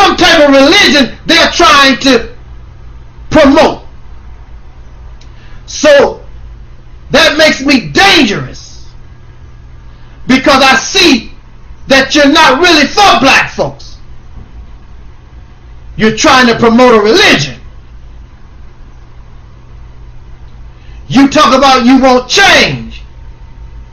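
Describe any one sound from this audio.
A man speaks close to a microphone in short, animated bursts with pauses between them.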